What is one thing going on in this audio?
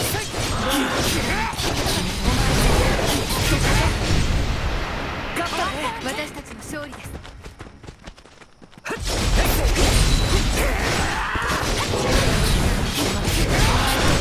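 Swords clash and slash in a fast fight.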